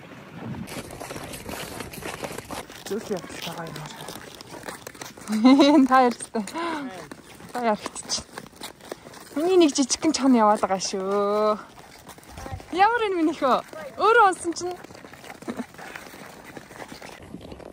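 Horses' hooves crunch slowly on snow.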